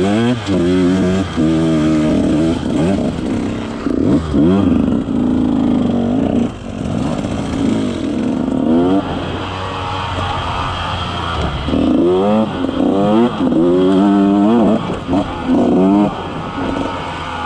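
A dirt bike engine revs up and down close by.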